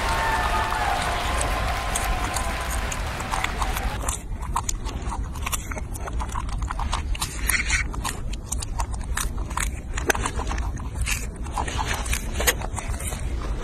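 A monkey chews and munches on strawberries.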